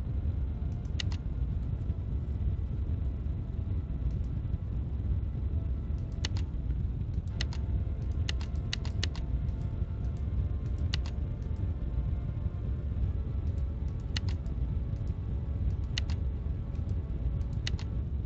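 Game interface buttons click sharply now and then.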